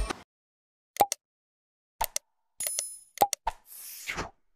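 A mouse button clicks several times.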